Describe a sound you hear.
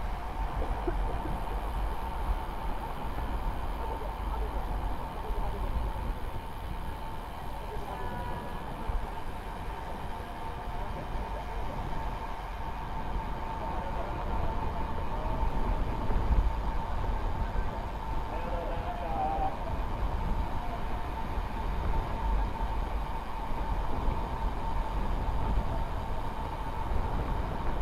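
Wind rumbles and buffets against a helmet-mounted microphone.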